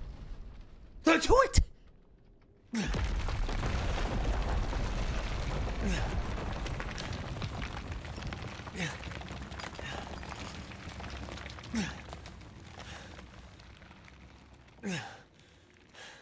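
A man exclaims loudly into a close microphone.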